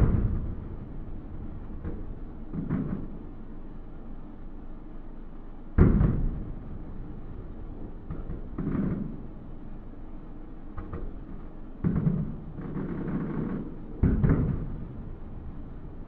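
Fireworks crackle and sizzle after bursting.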